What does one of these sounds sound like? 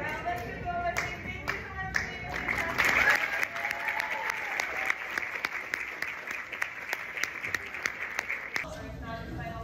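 A crowd applauds and claps loudly.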